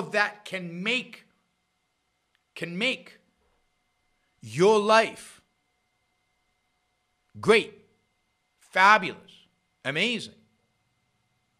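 An older man speaks closely into a microphone in short, emphatic bursts with pauses between them.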